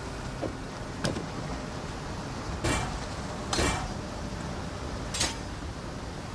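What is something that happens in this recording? Metal gear clanks briefly as items are equipped, several times.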